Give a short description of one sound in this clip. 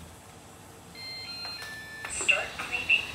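Robot vacuum cleaners chime with electronic beeps.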